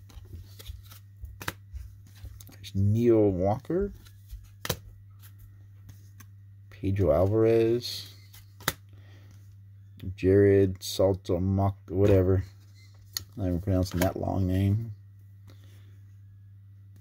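Trading cards slide against each other as they are leafed through by hand.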